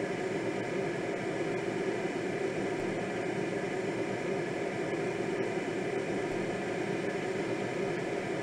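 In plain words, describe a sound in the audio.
Wind rushes steadily past a gliding sailplane.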